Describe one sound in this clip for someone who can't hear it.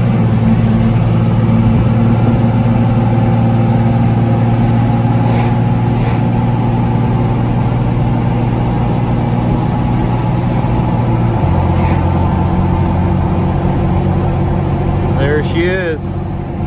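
A truck's diesel engine drones steadily from inside the cab, dropping in pitch as it shifts gear.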